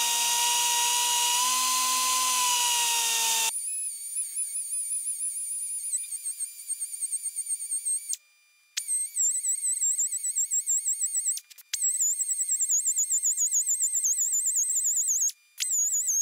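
A small air grinder whines at high pitch, wavering as it grinds metal.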